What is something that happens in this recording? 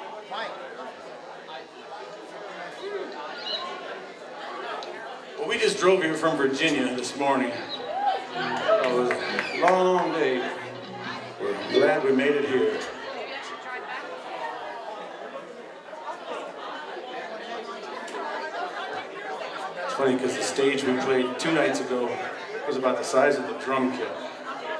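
An acoustic guitar strums.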